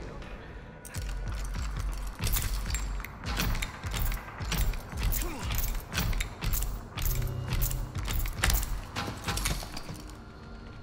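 A metal door rattles and knocks repeatedly.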